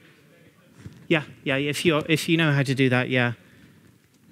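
A man speaks loudly through a microphone, heard over loudspeakers in a large room.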